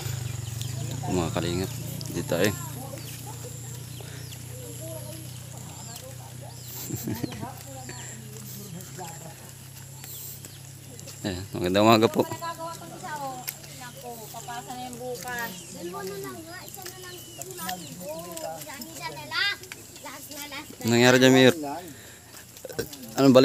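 Young men talk and call out to each other nearby outdoors.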